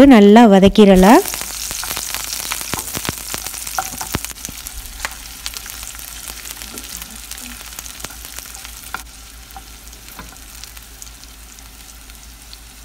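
Oil sizzles and crackles in a frying pan.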